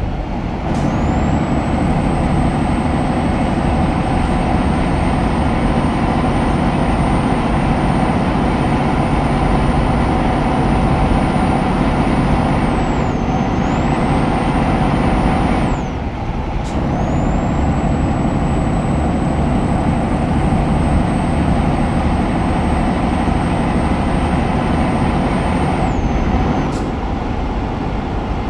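A truck engine hums steadily as the truck drives along a road.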